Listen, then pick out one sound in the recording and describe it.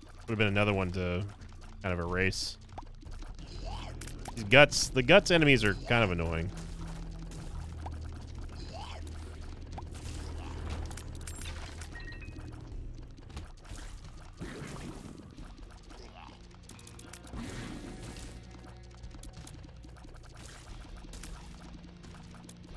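Video game shots pop and splat in quick bursts.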